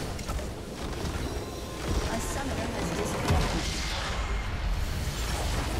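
Magic blasts and crackling spell effects burst in quick succession.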